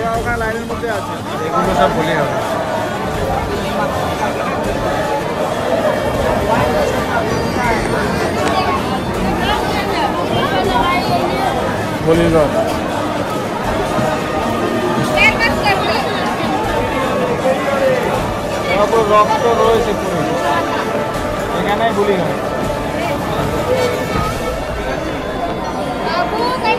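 A crowd chatters and murmurs all around.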